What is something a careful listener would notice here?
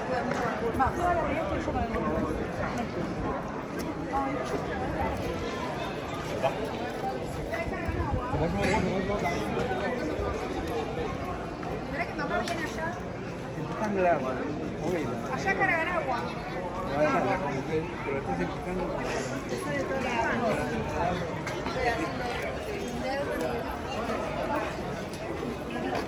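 A crowd of men and women chatters all around, close by and at a distance.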